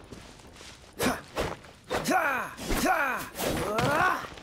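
Swooshing attack sounds ring out.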